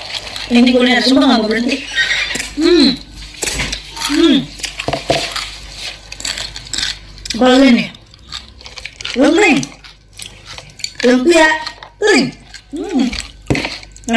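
Crispy food crunches as a young woman chews.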